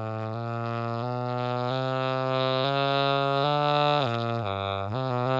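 An electronic instrument plays a melody of steady, held notes that step up and down.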